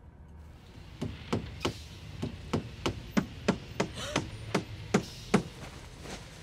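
A hammer pounds a nail with rapid, ringing blows.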